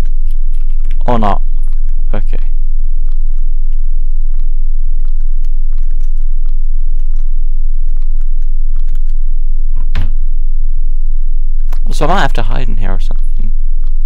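A wooden closet door creaks on its hinges.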